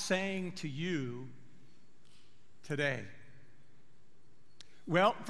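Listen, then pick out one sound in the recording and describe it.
An elderly man speaks expressively into a microphone, with pauses.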